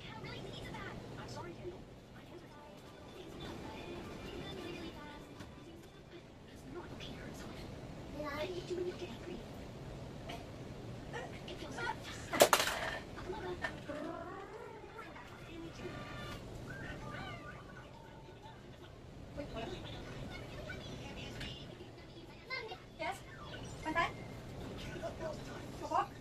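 A children's cartoon plays from a television nearby, with voices and music.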